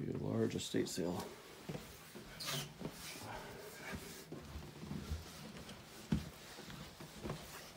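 Footsteps thud softly on carpet.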